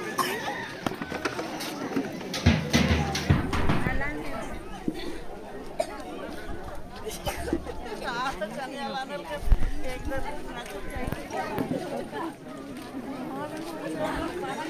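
A crowd of women and children chatter all around, close by, outdoors.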